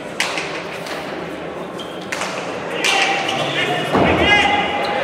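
A hard ball smacks against a wall and echoes.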